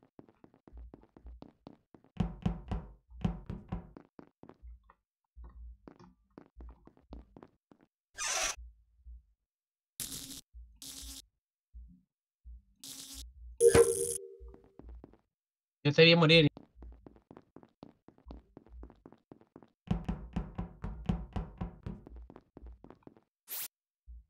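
Soft game footsteps patter quickly.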